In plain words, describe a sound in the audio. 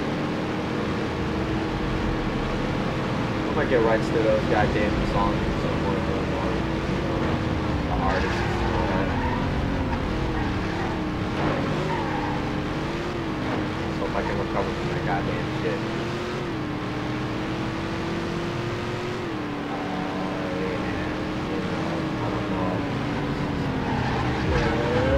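A racing car engine roars steadily, its pitch rising and dipping as it shifts gears.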